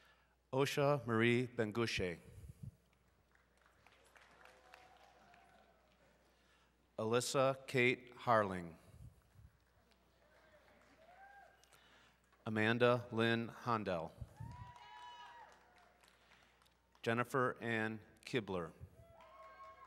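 A man reads out names over a loudspeaker in a large echoing hall.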